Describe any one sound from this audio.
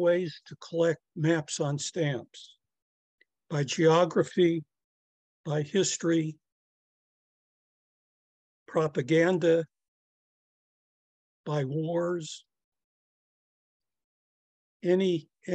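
An elderly man speaks calmly through a microphone, in phrases with pauses.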